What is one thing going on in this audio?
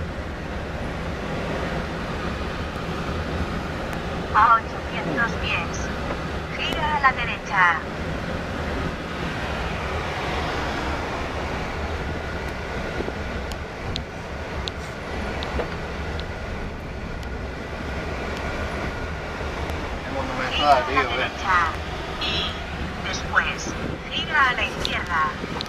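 A car engine hums and tyres rumble steadily on the road.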